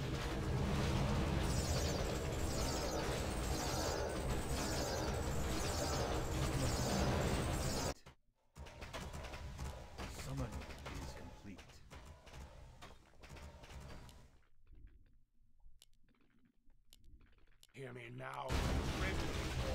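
Video game battle sounds clash and rumble loudly.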